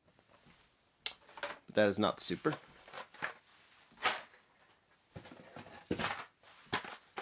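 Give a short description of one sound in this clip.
Plastic toy packaging crinkles and rattles as it is handled.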